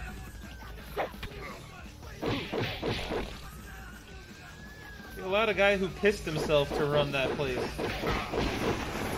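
Fists thump in punches.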